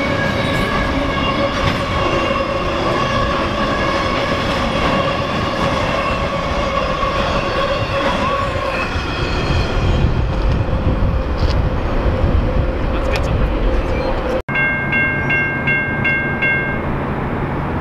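A railway crossing bell rings rapidly and steadily.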